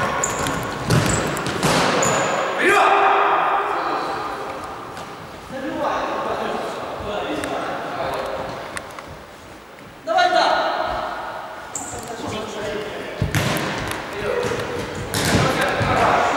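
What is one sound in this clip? A ball is kicked with sharp thuds that echo.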